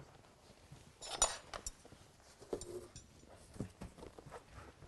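Metal legs of a folding table clatter and click as they are unfolded.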